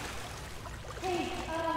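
A young woman speaks quietly into a microphone.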